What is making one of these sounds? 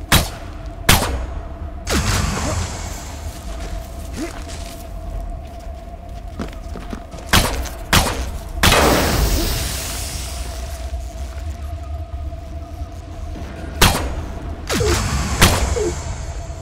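Gunshots and laser blasts ring out in sharp bursts.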